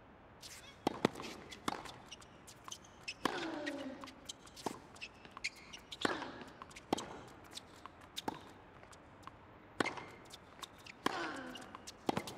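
Tennis balls are struck with sharp pops of a racket.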